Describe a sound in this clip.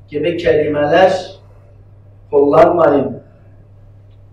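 An elderly man speaks calmly into a microphone, in short phrases.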